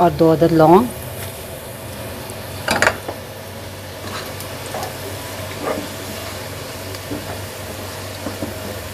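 Hot oil sizzles softly.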